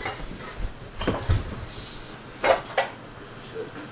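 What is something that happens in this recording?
Soft thumps and footsteps sound close by.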